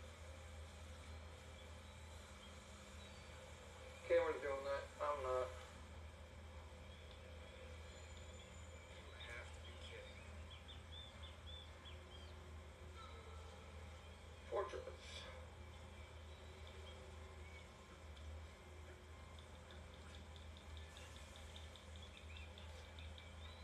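Video game sounds play faintly from a television.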